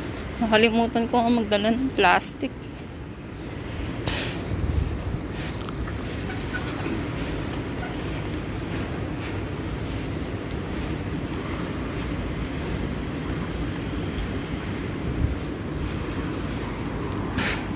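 A steady low hum of distant city traffic fills the air outdoors.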